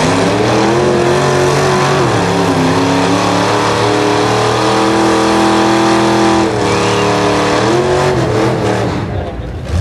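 A car engine roars loudly at high revs, rising and falling.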